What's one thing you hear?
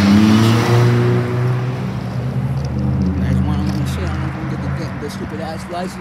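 A pickup truck's engine idles nearby.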